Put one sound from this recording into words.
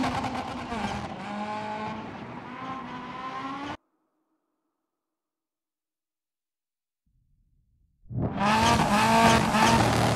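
A rally car engine roars at high revs.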